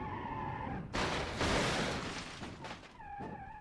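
A car crashes and scrapes loudly against a wall.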